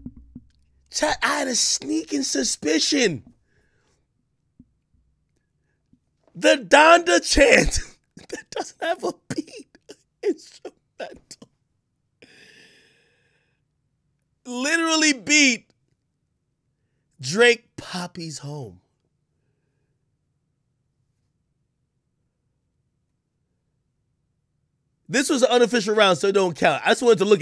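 A man talks loudly and with animation into a microphone, in bursts.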